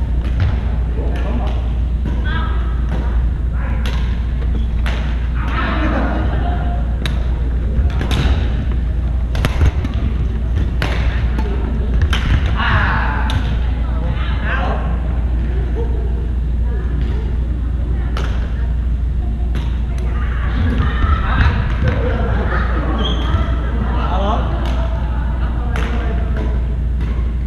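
Rackets hit a shuttlecock with sharp pops, echoing in a large hall.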